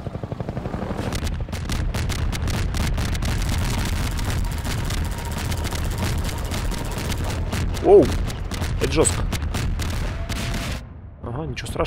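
A helicopter fires rapid bursts of gunfire.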